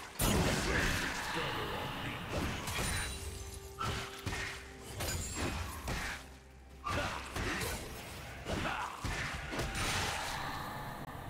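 Game spell effects burst and clash in a busy fight.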